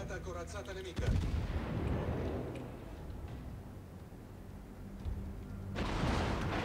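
Heavy ship guns fire with deep, rumbling booms.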